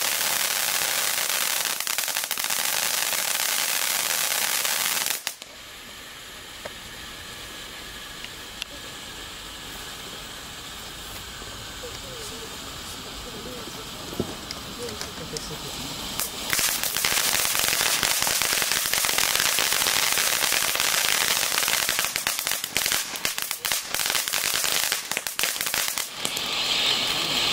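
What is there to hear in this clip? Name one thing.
A firework fountain hisses and roars as it sprays sparks.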